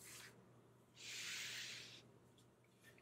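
Cloth gloves rustle and brush against a box.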